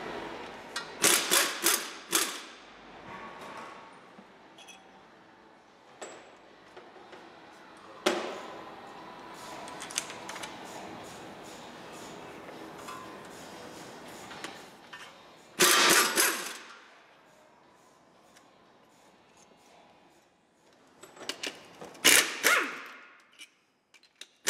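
An impact wrench whirs loudly in short bursts.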